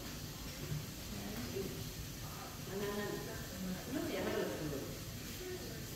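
A middle-aged woman speaks close by.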